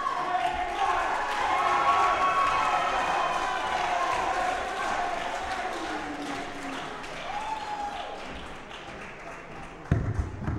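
A crowd cheers and whistles in a large echoing hall.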